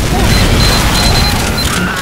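Explosions boom loudly.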